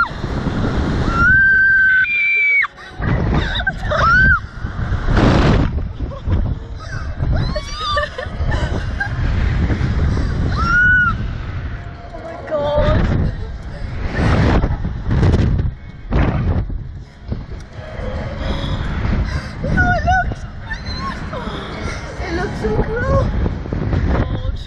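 Wind rushes and buffets past riders on a swinging thrill ride.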